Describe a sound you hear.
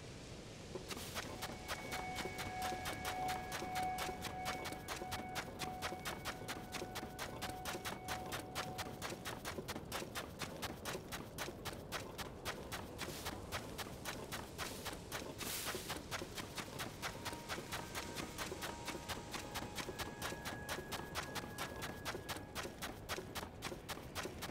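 Quick footsteps patter on soft sand.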